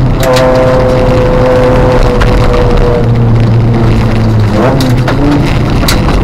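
A car engine roars loudly as the car speeds along.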